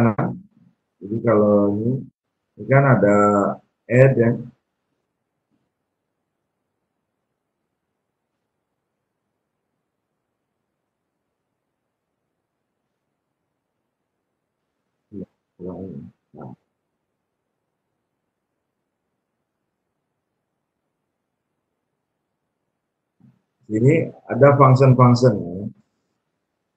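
A man speaks calmly through an online call, in short bursts with long pauses.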